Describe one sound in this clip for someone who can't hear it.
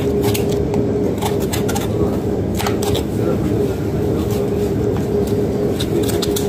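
A knife slices through raw meat.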